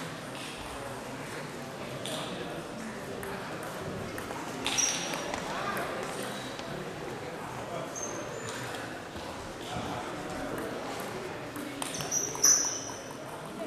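Ping-pong balls click on tables and bats.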